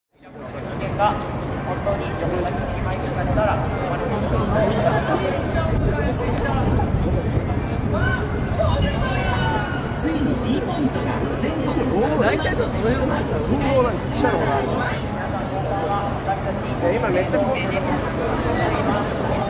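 A crowd of people chatter and murmur outdoors on a busy street.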